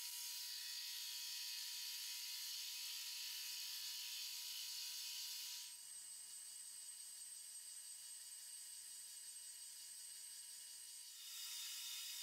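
A cutting tool shaves metal with a high, hissing screech.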